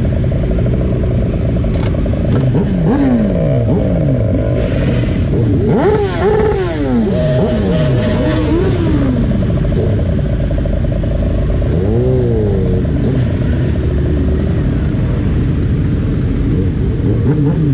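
Many motorcycle engines idle and rumble close by, outdoors.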